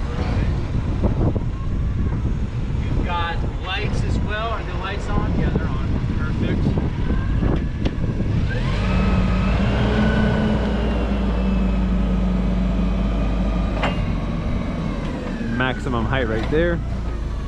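A forklift engine idles and hums steadily.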